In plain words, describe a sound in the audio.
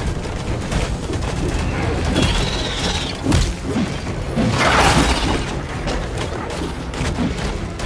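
Creatures snarl and growl.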